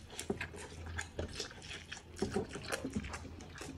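A young man slurps noodles close by.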